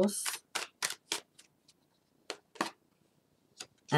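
A playing card slides and is set down on a cloth surface.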